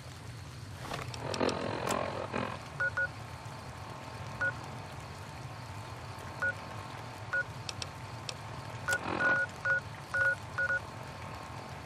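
A handheld device gives short electronic beeps and clicks.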